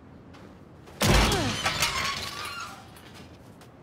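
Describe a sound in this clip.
A metal gate creaks and scrapes open loudly.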